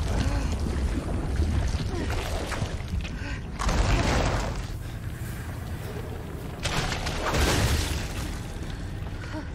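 A young woman gasps and breathes in fear.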